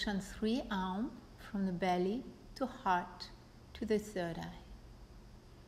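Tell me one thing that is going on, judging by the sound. A woman speaks calmly and softly, close by.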